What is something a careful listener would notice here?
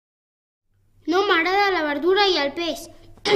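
A young boy sings close by.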